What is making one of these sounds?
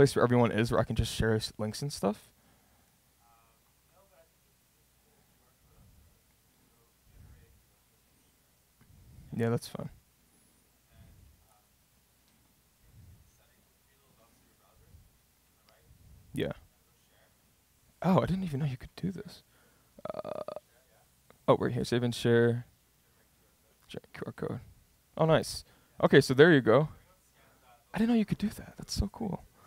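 A man speaks calmly into a microphone, pausing often.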